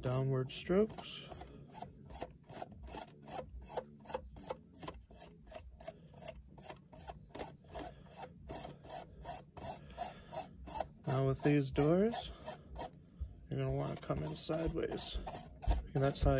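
A stiff brush scrubs across a plastic model boxcar.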